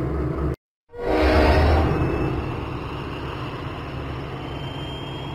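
A train rumbles along the tracks.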